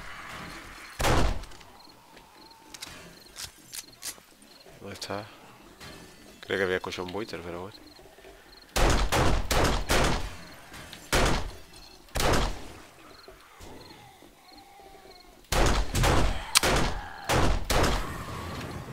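Gunshots fire in loud, sharp bursts.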